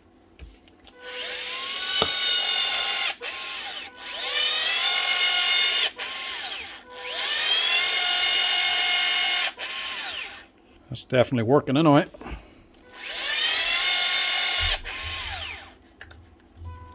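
An electric caulking gun whirs in repeated bursts, its motor rising in pitch as each burst starts.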